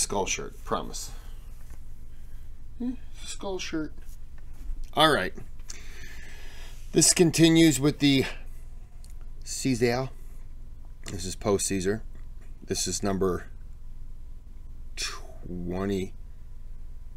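A man talks calmly into a close microphone, in short bursts with pauses.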